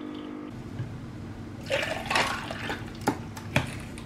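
Water pours over ice cubes in a glass.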